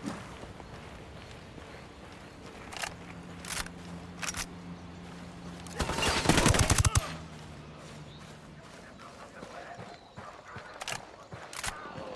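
Footsteps run across grass and dirt.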